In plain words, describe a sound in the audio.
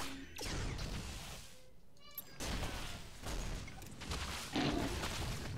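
Rapid gunfire and blasts rattle in a fierce battle.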